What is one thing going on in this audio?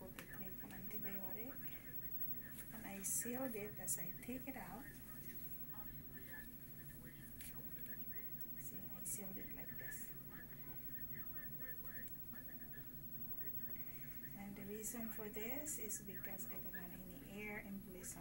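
A plastic wrapper crinkles in gloved hands.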